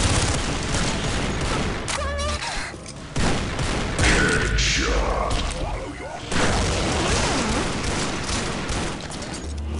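Guns fire in rapid bursts with loud cracks.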